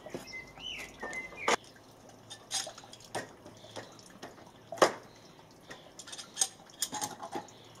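Wooden boards knock and clatter as they are handled.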